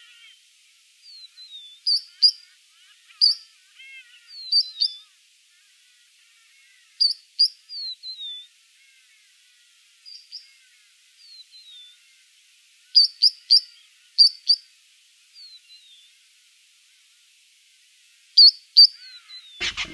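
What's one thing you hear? A three-banded plover gives sharp, high whistled calls.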